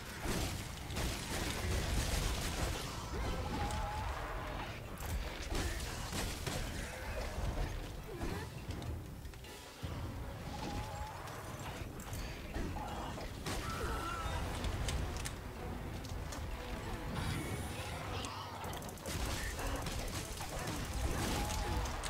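A blade slashes and clangs against a huge beast's hide.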